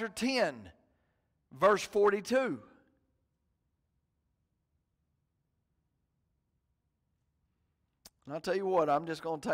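A middle-aged man speaks calmly through a microphone, with long pauses.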